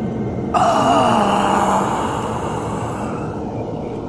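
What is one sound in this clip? Magical energy crackles and hums loudly.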